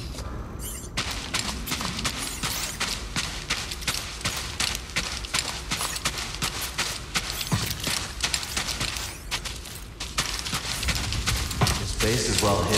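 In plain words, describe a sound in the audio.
Footsteps run quickly over a hard floor.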